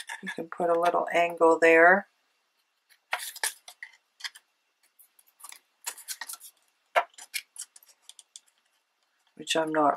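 Scissors cut through paper.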